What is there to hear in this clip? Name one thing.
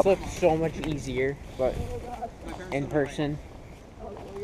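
A young man speaks close by, outdoors.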